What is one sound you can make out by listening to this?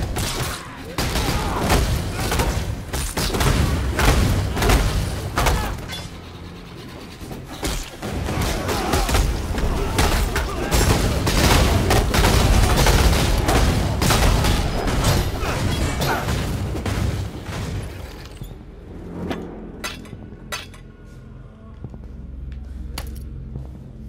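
Weapon hits thud in rapid succession.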